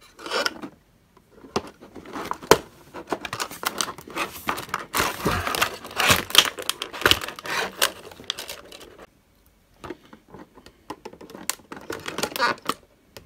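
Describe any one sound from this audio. Stiff clear plastic crinkles and crackles as it is handled.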